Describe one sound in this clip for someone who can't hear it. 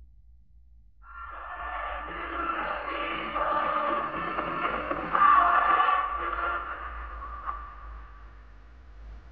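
An old radio recording plays through a loudspeaker.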